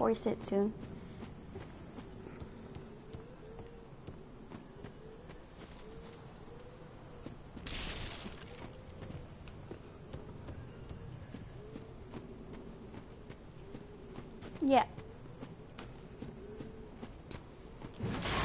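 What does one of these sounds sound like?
Armoured footsteps run over stone.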